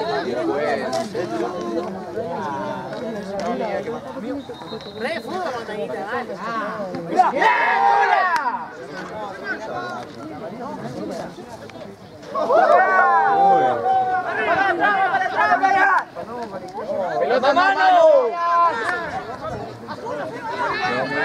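Young men shout excitedly to each other across an open field.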